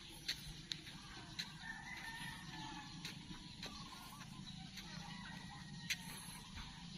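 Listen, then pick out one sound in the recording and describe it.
Footsteps tap on a paved path outdoors.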